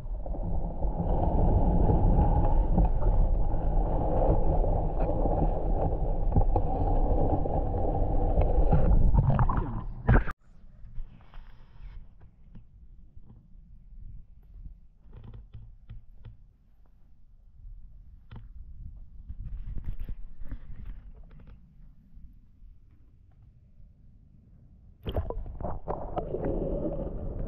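Water rumbles and gurgles in a deep muffled roar, as if heard underwater.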